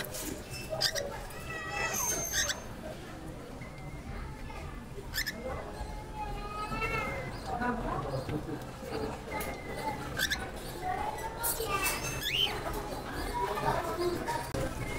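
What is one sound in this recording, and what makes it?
Cockatiels chirp and whistle close by.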